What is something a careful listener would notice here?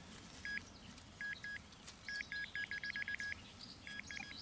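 A metal detector beeps in short rapid bursts.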